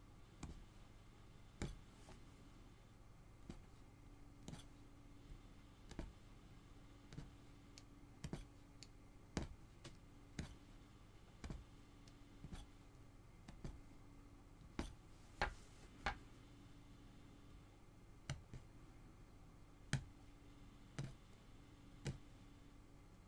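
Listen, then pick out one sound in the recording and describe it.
A punch needle taps and pokes repeatedly through stretched fabric.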